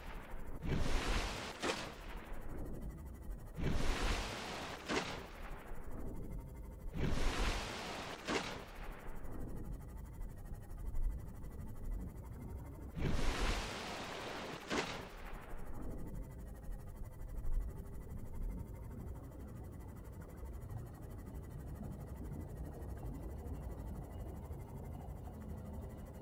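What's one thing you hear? A low underwater rumble and hum surround a small craft.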